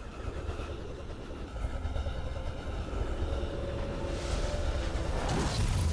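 A magic spell whooshes and shimmers in a video game.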